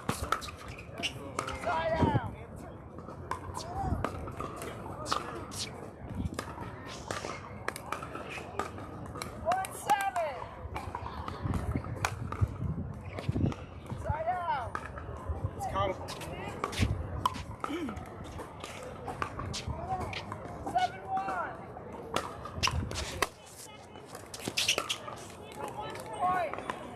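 Paddles pop sharply against a plastic ball, again and again.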